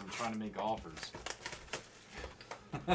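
Plastic wrap crinkles as it is torn open.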